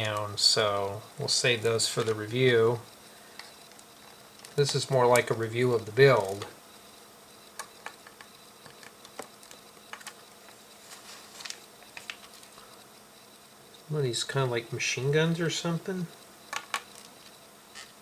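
Small plastic pieces click and tap on a hard surface.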